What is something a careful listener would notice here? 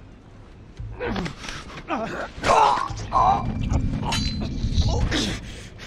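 A man grunts and shouts with effort.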